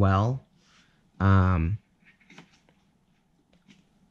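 A metal die clicks as it is pulled from a plastic case.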